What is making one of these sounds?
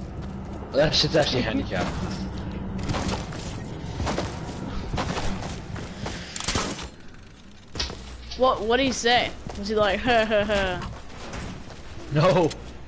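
Quick footsteps thud on a hard surface.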